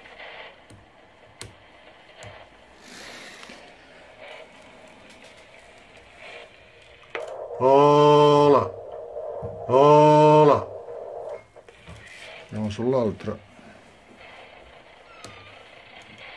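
A knob clicks as a hand turns it.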